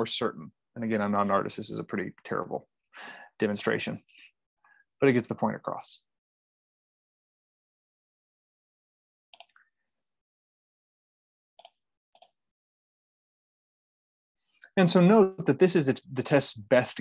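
A young man speaks calmly over an online call, pausing now and then.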